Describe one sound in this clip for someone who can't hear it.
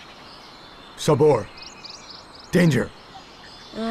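A man speaks in a low, urgent voice.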